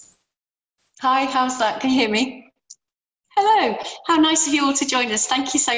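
A middle-aged woman speaks cheerfully over an online call.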